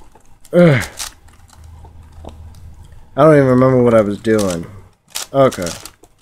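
A puzzle cube clicks and clatters as its layers are turned.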